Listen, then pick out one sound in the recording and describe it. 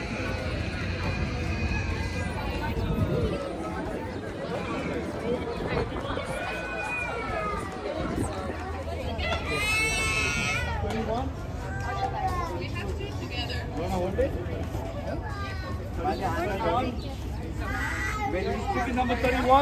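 A crowd of men, women and children chatter all around, outdoors.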